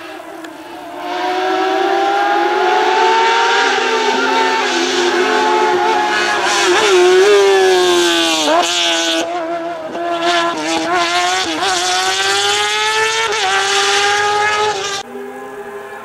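A racing car engine roars close by, revving hard and dropping in pitch as it shifts gears.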